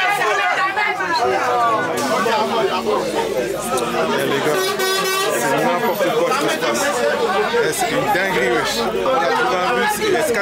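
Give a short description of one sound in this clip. A crowd of passengers chatters and sings loudly close by.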